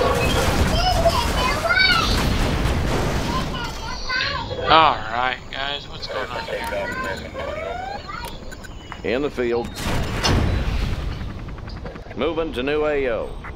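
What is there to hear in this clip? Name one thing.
Explosions boom and rumble amid gunfire.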